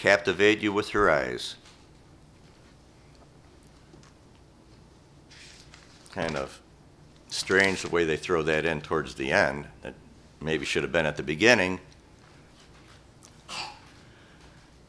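An elderly man speaks calmly and slowly through a microphone, with pauses.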